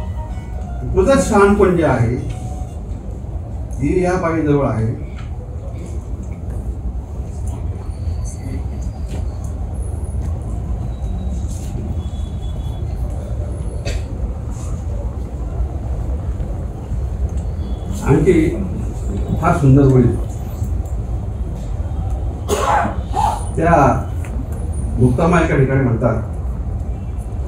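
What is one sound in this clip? A middle-aged man speaks slowly into a microphone over a loudspeaker, in an echoing room.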